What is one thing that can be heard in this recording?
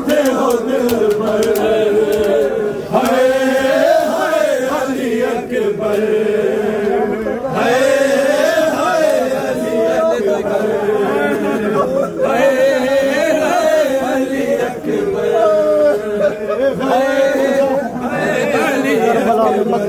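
A crowd of men beats their chests in rhythm.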